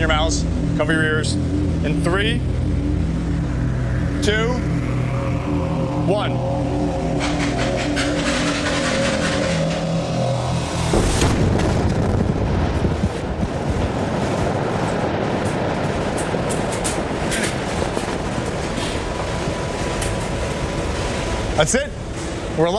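A loud machine rumbles steadily.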